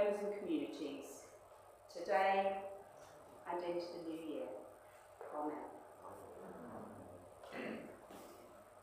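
A woman speaks calmly into a microphone in a reverberant hall.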